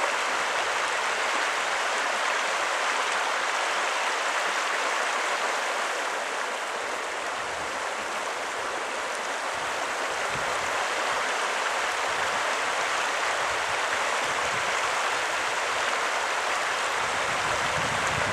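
A river rushes and ripples steadily.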